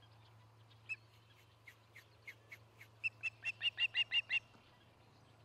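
A bird of prey gives a series of sharp, high whistling calls that quicken and grow louder.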